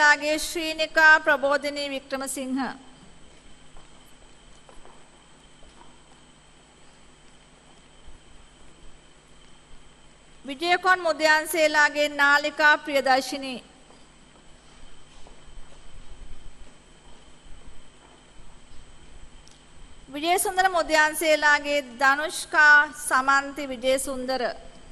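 A woman reads out in a clear, measured voice over a loudspeaker in a large hall.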